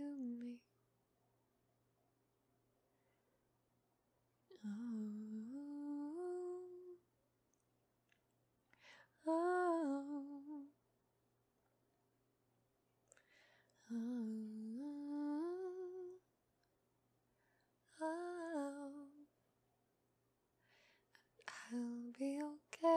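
A young woman sings a slow melody in phrases, separated by pauses.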